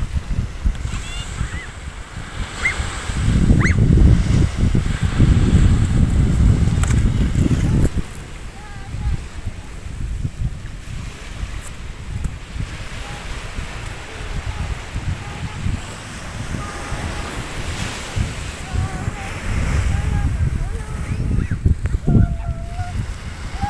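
Young children call out in the distance.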